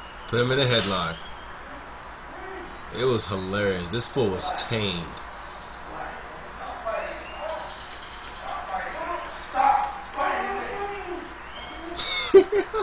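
A man speaks loudly and forcefully nearby.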